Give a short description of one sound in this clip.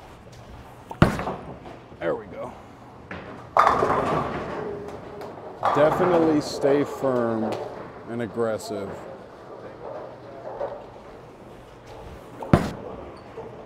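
A bowling ball thuds onto a wooden lane.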